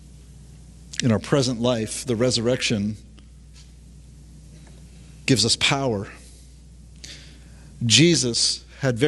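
A middle-aged man reads out calmly through a microphone, pausing between phrases.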